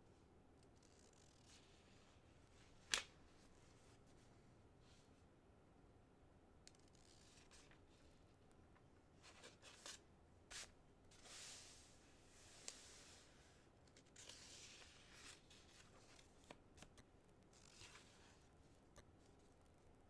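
Large wings flap and whoosh through the air.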